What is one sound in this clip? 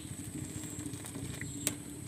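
Thick liquid pours from a ladle into a pan.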